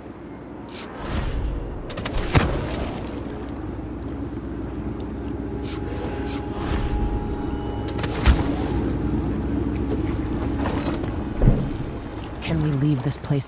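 Water splashes and laps against a small boat.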